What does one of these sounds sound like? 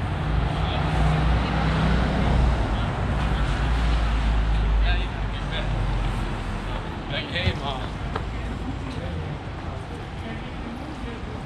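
Traffic rumbles steadily along a nearby street.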